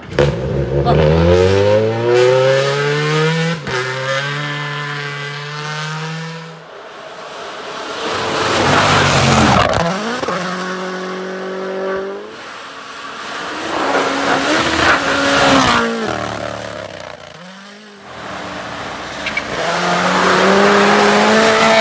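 A turbocharged rally car races along a snowy road at full throttle, shifting through the gears.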